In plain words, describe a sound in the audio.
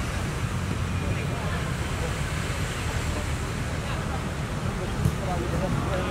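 A football is struck hard with a dull thud.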